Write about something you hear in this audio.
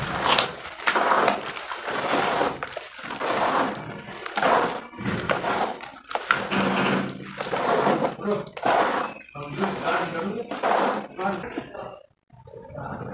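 Hands squelch and splash through thick wet mud.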